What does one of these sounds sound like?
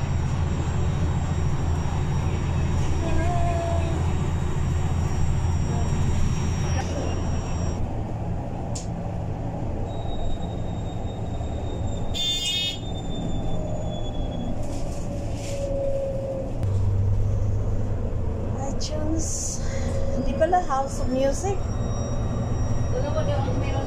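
Traffic hums past on a busy road.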